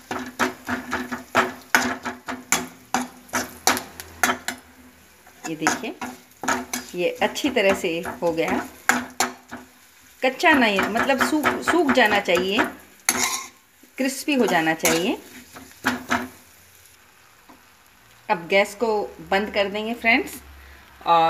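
A metal spatula scrapes and clacks against a wok.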